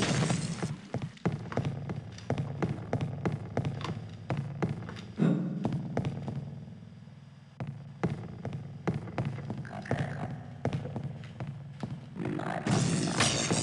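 Footsteps thud on concrete at an even walking pace.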